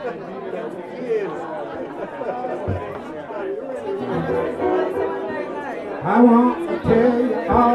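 A middle-aged man talks cheerfully close by.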